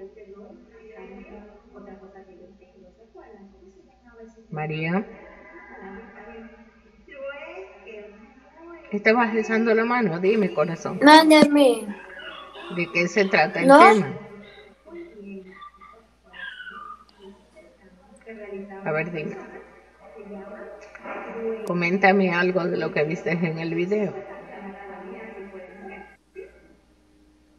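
A child speaks over an online call.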